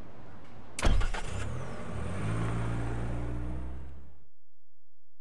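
A car engine rumbles low and fades away.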